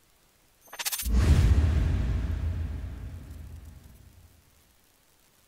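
A deep whoosh swells and slowly fades.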